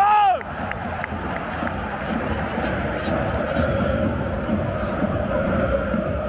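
A large stadium crowd chants and roars in a wide open space.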